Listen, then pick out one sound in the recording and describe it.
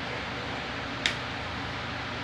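Pliers snip a wire with a sharp click.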